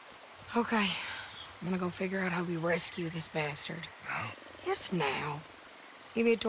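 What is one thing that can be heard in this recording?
A young woman speaks calmly and earnestly, close by.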